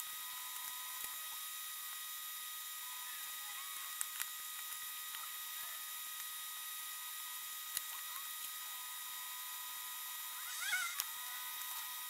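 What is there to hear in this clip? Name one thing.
Small plastic and metal parts click and tap.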